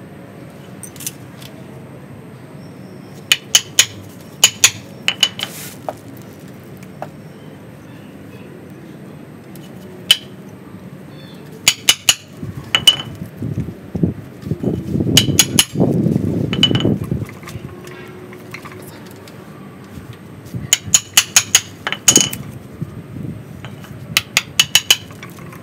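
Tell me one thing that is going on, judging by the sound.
A metal tool scrapes and taps against dry wood and roots.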